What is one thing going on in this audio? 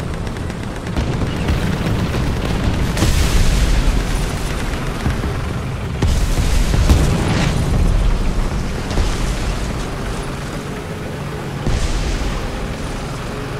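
Tank tracks clank and grind over the ground.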